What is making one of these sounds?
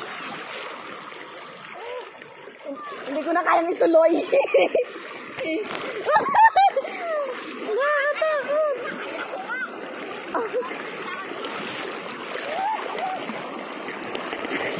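A wide river rushes and laps steadily nearby.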